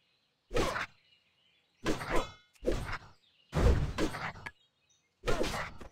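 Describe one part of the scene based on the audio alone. Sword blows strike with sharp clangs during a fight.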